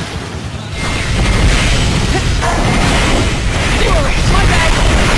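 An electric energy blast crackles and roars loudly.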